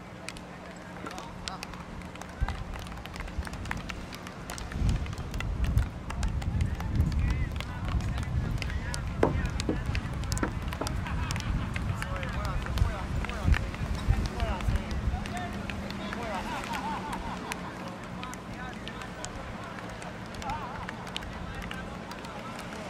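Hockey sticks click sharply against a ball.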